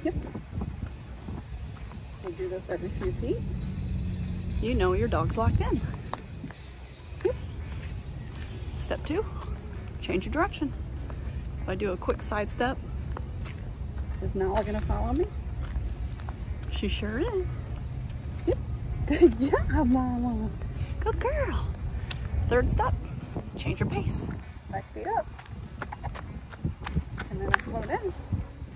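Flip-flops slap on pavement.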